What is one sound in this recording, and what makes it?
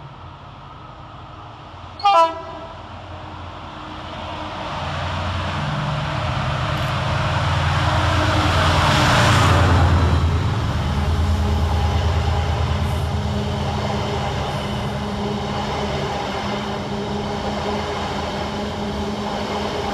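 A train approaches and rumbles loudly past on the rails.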